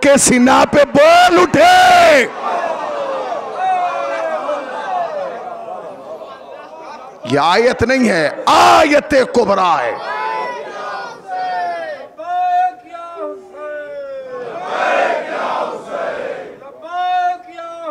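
A man speaks and chants with strong emotion through a microphone and loudspeaker.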